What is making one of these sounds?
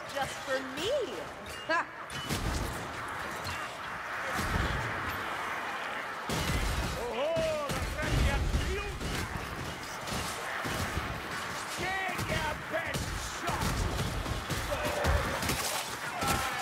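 A sword swings and strikes flesh with heavy thuds.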